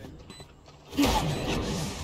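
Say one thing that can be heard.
A thrown device bursts with a sudden whoosh.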